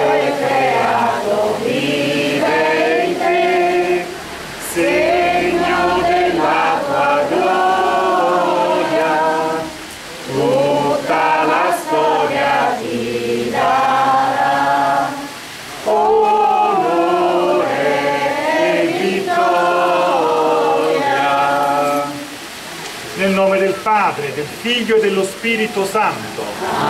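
A man sings a slow chant through a microphone and loudspeaker outdoors, pausing between lines.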